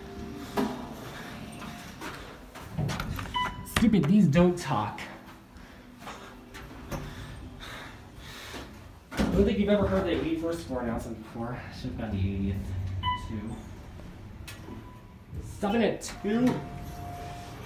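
Elevator doors slide open and shut with a soft rumble.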